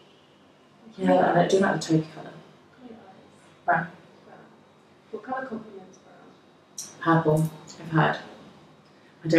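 Another young woman talks and answers nearby.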